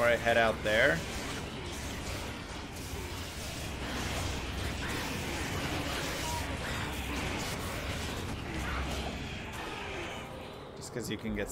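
Spells crackle and roar in a fast game battle.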